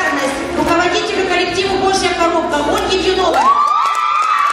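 A woman speaks through a microphone into a large hall.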